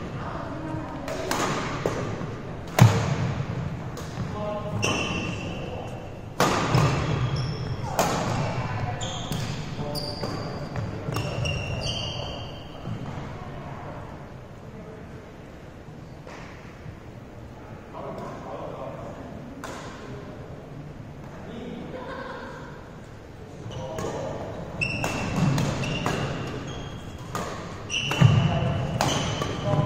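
Badminton rackets strike a shuttlecock with sharp pops that echo in a large hall.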